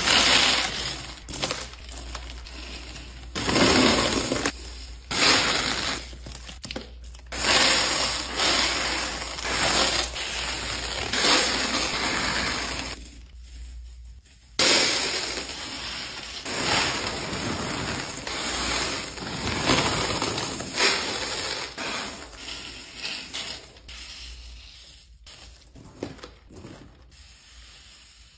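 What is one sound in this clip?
Small plastic beads pour and rattle onto a heap of beads.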